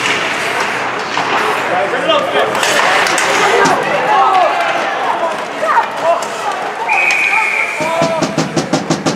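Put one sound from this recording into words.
A crowd of spectators cheers and shouts in an echoing arena.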